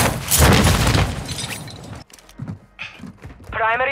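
Boots land with a thud on a hard surface.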